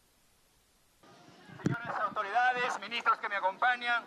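A man speaks loudly with animation into a microphone, heard through a loudspeaker outdoors.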